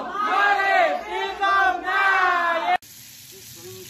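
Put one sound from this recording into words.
A group of people sing and cheer loudly together.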